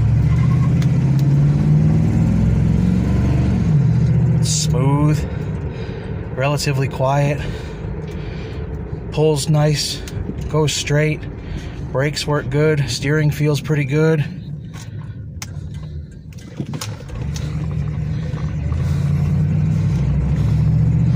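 A car engine hums steadily while driving, growing louder at the start and end.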